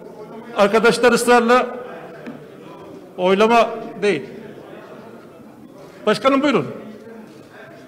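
A middle-aged man speaks forcefully through a microphone in bursts.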